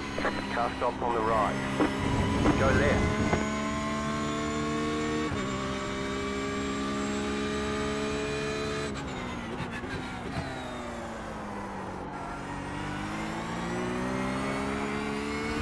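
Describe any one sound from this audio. A racing car engine roars, climbing in pitch through the gears, dropping as the car slows, then building again.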